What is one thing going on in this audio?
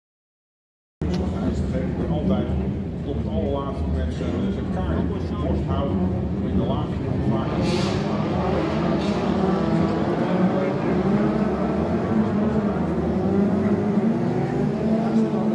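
Several racing car engines drone and roar as the cars pass close by.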